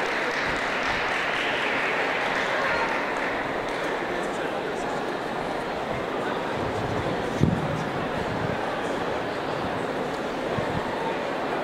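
A woman sings into a microphone in a large echoing hall.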